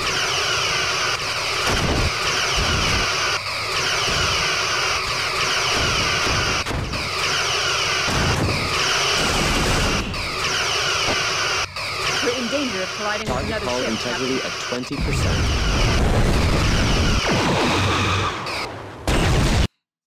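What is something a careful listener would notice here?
Laser beams fire with a steady buzzing hum.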